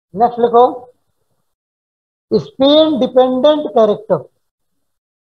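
A man speaks calmly, heard through a microphone.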